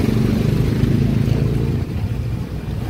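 A vehicle engine rumbles nearby.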